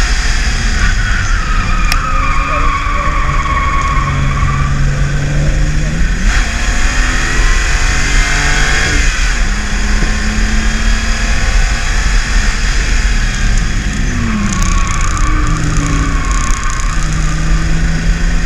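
Tyres squeal on the track through corners.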